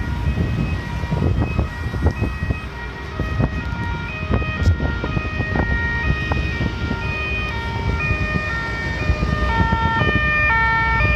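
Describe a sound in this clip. Emergency sirens wail in the distance and grow louder.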